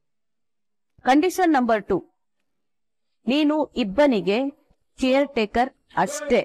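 A woman speaks tensely and close by.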